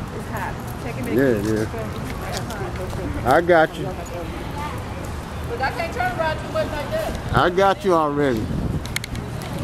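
A young girl calls out excitedly nearby.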